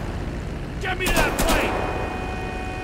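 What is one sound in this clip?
A car explodes with a loud blast.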